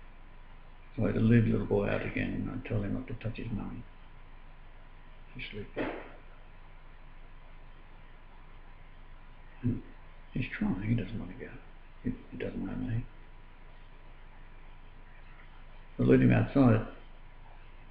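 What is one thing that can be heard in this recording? An older man speaks calmly and close by, in short bursts with pauses.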